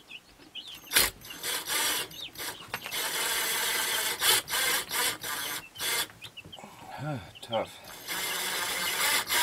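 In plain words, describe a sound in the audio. A cordless drill whirs in short bursts, driving screws into wood.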